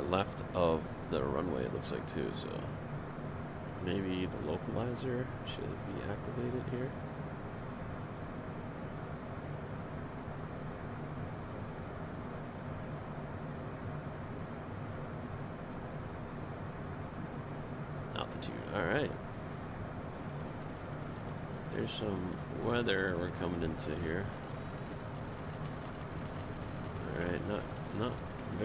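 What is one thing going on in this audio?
A steady low engine hum drones throughout.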